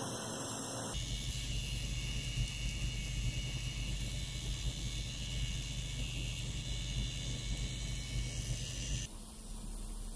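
A computer fan hums steadily up close.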